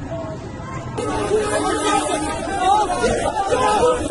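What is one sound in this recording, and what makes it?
A crowd of men shouts loudly outdoors.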